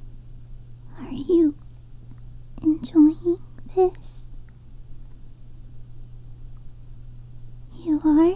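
A young woman speaks in short, high-pitched bursts close to a microphone.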